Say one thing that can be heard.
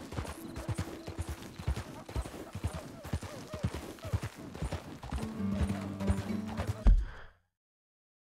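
Horse hooves clop steadily on a dirt trail.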